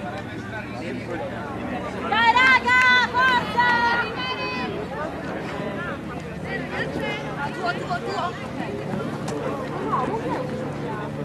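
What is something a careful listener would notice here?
Young women call out across an open field.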